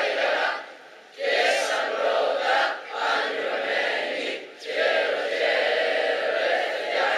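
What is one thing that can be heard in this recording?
A large crowd of teenage boys and girls sings together outdoors, in phrases with short pauses.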